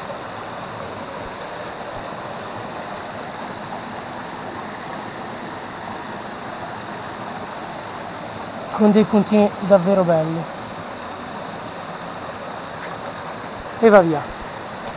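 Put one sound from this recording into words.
A mountain stream babbles and splashes over rocks close by.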